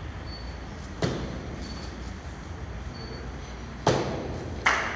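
A rubber stamp thumps down onto paper.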